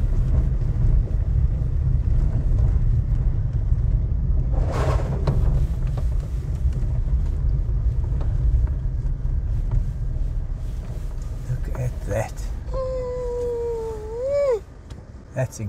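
A vehicle rumbles slowly over a bumpy dirt track.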